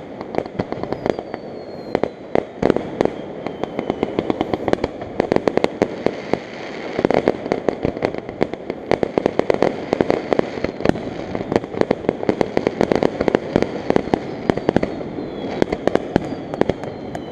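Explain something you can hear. Fireworks whistle as they rise.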